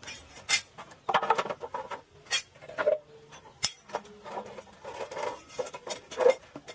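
Hollow bamboo poles knock and clatter against each other.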